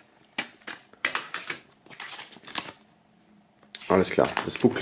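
Paper booklets rustle and crinkle in hands.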